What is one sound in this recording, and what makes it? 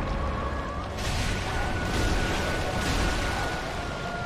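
A sword swishes and strikes in a fight.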